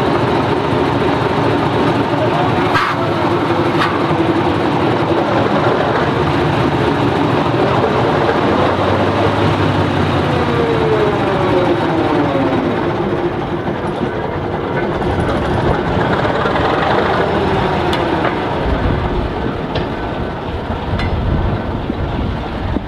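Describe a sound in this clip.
Steel wheels squeal and clatter on the rails.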